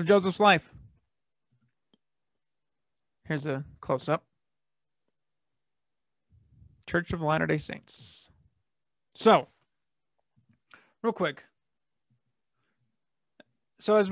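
A man speaks calmly through a microphone, in short phrases with pauses, as if on an online call.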